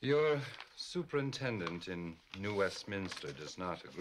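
Paper rustles as a man unfolds a letter.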